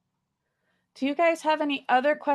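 A second woman speaks over an online call.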